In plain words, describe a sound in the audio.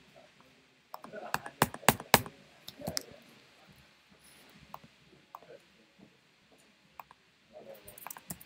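A microphone knocks and rustles as it is handled.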